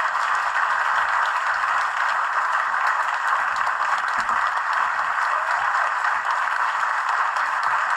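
A large crowd applauds steadily, heard through a small speaker.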